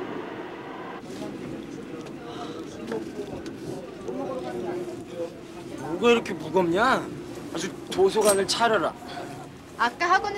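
Men and women chatter nearby.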